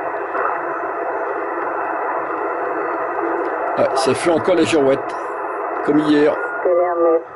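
Radio static hisses and crackles from a loudspeaker.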